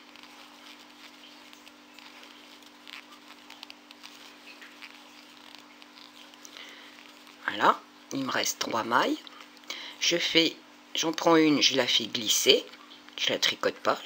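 Yarn rustles softly as it is wound and tied by hand.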